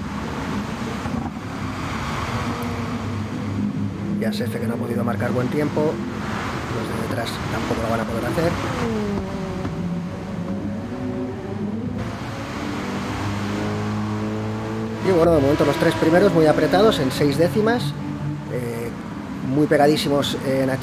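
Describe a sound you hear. Racing car engines roar and whine, rising and falling in pitch as gears change.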